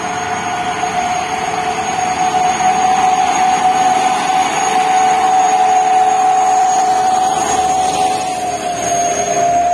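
Heavy truck engines drone as the trucks climb the hill.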